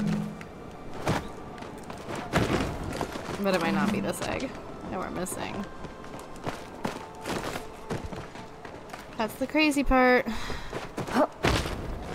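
Footsteps patter quickly over grass and rock.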